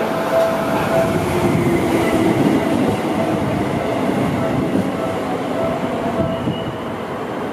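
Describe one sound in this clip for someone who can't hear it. Train brakes squeal as a train slows to a stop.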